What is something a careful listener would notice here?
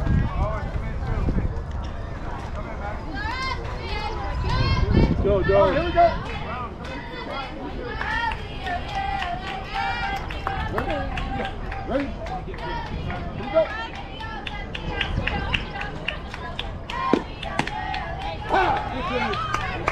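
Young women and girls shout and cheer across an open field.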